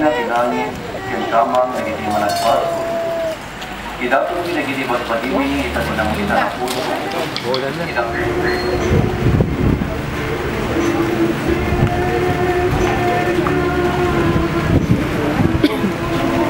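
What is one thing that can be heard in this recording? A crowd of men and women sings together softly outdoors.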